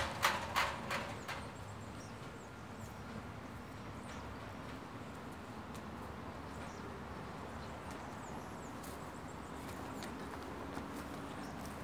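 Boots crunch on dry dirt as a man walks close by.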